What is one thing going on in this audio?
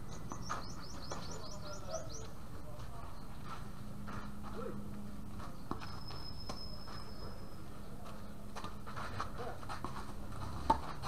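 A tennis ball thuds now and then on a hard court outdoors.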